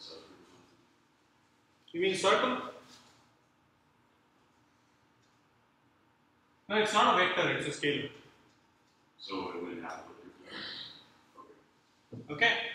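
A man explains calmly, pausing between phrases.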